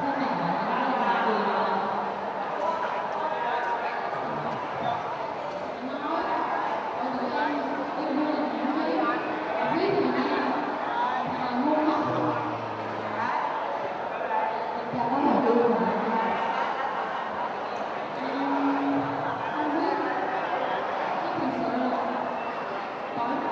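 A girl speaks into a microphone over loudspeakers in a large echoing hall.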